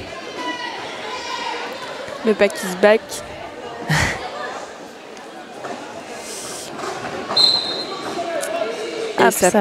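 Skate wheels roll and scrape across a hard floor in a large echoing hall.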